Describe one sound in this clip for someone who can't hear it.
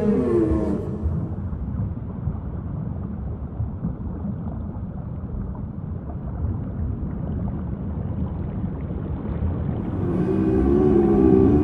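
Water swirls and splashes gently as a whale breaks the surface.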